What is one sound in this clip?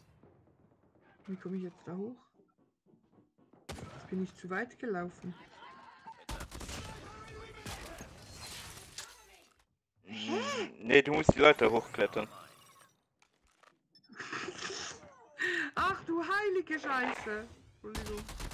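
Gunfire from a video game rattles in short bursts.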